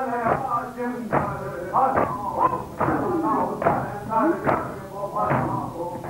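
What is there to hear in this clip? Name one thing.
Hands beat rhythmically on chests with dull thumps.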